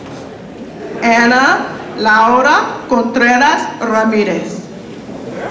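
A woman announces through a loudspeaker in a large hall.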